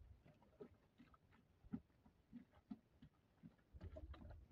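Wet clothes squelch and slosh as they are pounded by hand in a metal drum.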